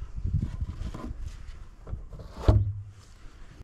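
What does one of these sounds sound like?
A rifle knocks against wood.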